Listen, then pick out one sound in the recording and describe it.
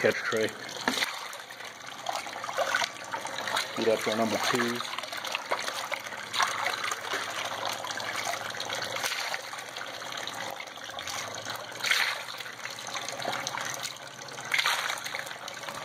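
Thick wet slurry splashes and slops as it is scooped.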